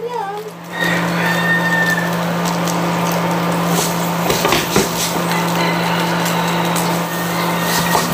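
A wooden spatula scrapes and stirs rice in a pan.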